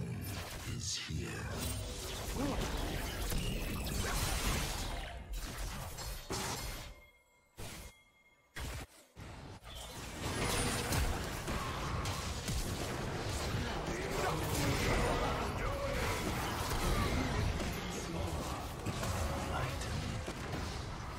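Magic blasts and clashes crackle and whoosh in a video game battle.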